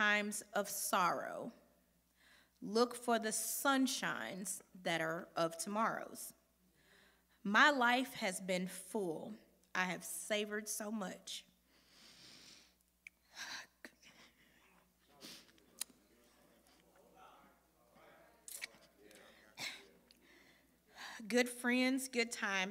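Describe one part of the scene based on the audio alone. A young woman speaks with emotion into a microphone in a large echoing hall.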